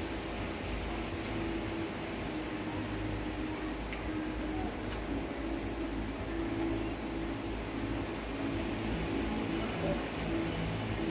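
An electric fan hums steadily.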